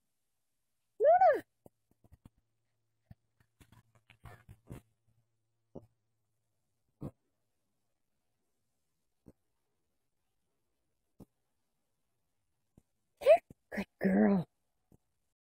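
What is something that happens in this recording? A puppy yips and barks in short, high bursts.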